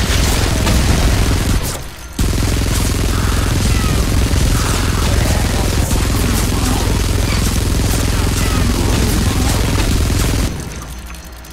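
A rapid-fire gun blasts in long, loud bursts.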